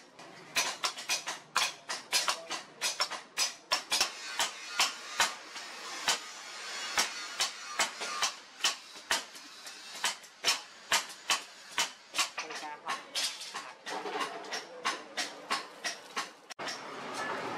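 A hammer rings sharply on hot metal on an anvil, again and again.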